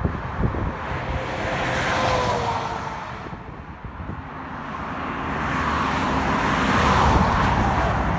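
A heavy truck roars past close by.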